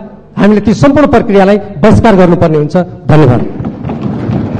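A middle-aged man speaks loudly into a microphone, his voice ringing in a large echoing hall.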